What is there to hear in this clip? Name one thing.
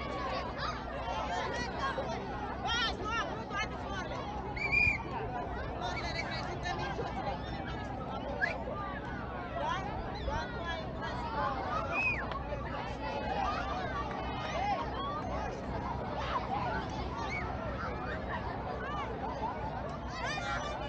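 A large crowd of people chatters and calls out in the distance, outdoors.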